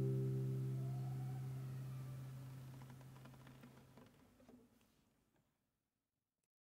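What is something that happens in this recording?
An acoustic guitar chord rings out and slowly fades to silence.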